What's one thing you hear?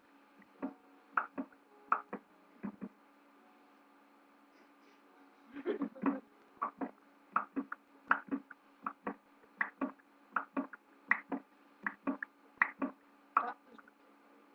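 Game blocks crack and break with quick, repeated knocks.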